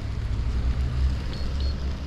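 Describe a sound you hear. A car drives away down the road.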